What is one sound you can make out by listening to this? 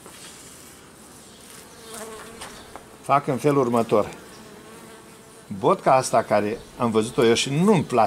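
Bees buzz in a low, steady hum.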